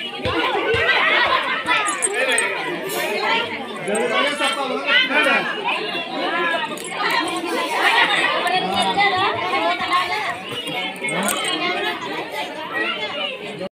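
A group of women sing together loudly and close by.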